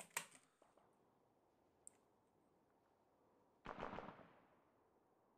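Explosions boom in short, sharp bursts.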